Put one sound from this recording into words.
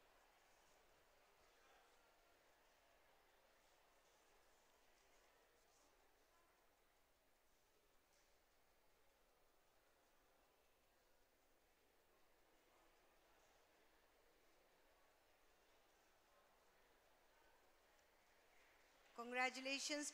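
An audience murmurs softly in a large hall.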